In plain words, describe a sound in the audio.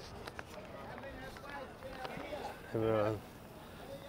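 A bicycle rolls past on paving.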